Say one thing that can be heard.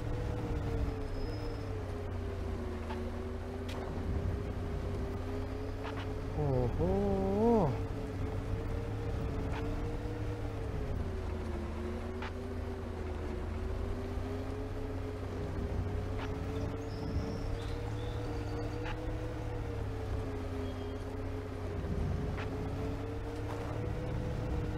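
A bus engine hums steadily as it drives along.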